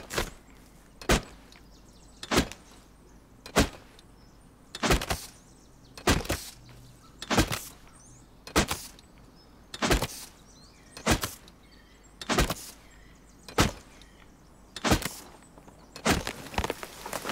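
A tool chops into a tree trunk with sharp, regular thuds.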